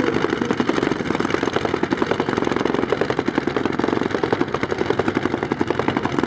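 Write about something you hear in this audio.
A loud motorcycle engine idles with a rapid, rough pulsing throb.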